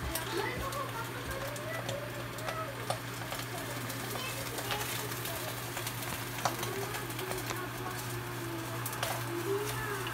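A plastic package crinkles in a hand.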